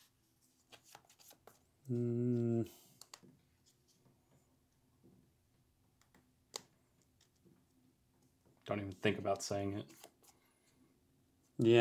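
Playing cards riffle and rustle in someone's hands.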